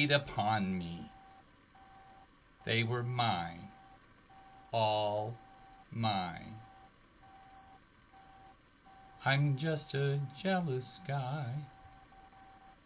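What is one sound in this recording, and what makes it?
A woman speaks expressively over an online call.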